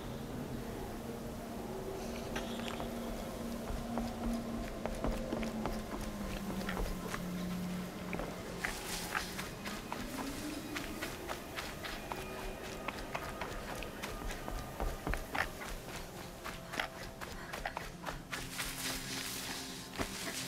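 Footsteps crunch quickly through snow and over wooden planks.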